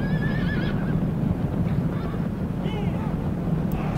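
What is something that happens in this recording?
Horses' hooves rumble across open ground.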